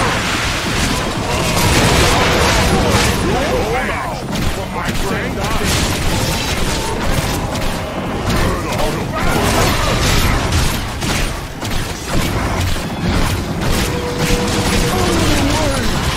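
Crossbow bolts fire and thud repeatedly.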